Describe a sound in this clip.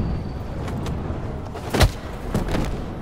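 A heavy punch lands with a dull thud.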